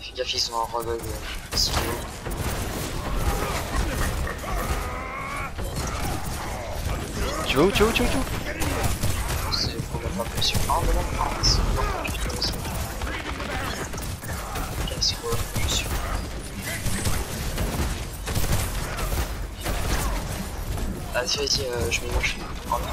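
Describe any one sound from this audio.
Energy weapons fire in rapid crackling bursts.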